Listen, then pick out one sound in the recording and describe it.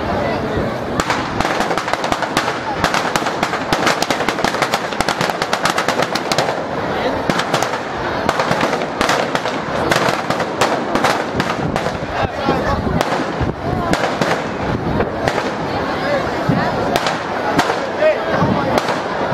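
A large burning effigy crackles and pops outdoors.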